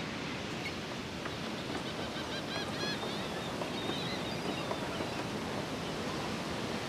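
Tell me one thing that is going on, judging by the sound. Footsteps tap on a wooden pier.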